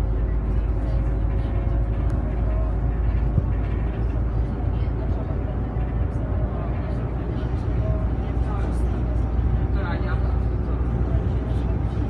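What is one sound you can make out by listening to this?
A bus engine drones steadily from inside the cabin.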